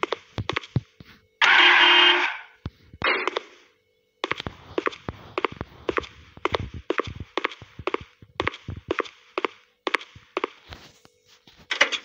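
Footsteps thud quickly on pavement.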